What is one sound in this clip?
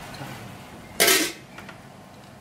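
A metal lid clanks down onto a pot.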